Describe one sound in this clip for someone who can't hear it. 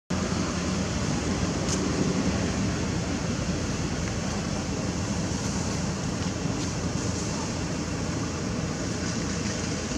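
A monkey rustles through dry leaves on the ground.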